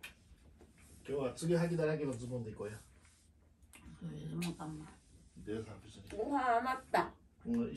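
An elderly woman talks and laughs nearby.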